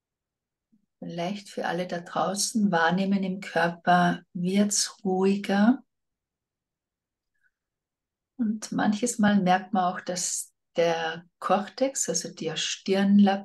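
A middle-aged woman speaks calmly and slowly, close to a microphone.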